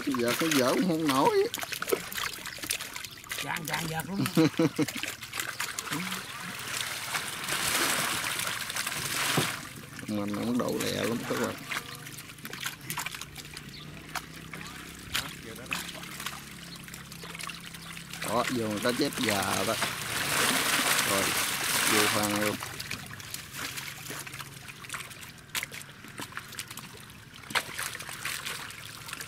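Fish thrash and splash in shallow water.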